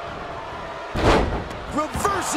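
A heavy body slams onto the ring mat with a loud thud.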